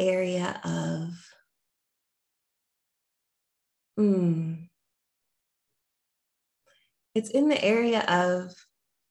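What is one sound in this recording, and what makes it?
A young woman speaks thoughtfully into a nearby microphone, pausing between phrases.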